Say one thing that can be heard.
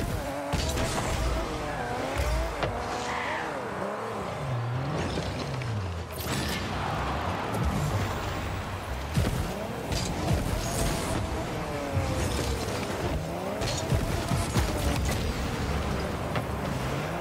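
A car engine revs and whines, rising and falling in pitch.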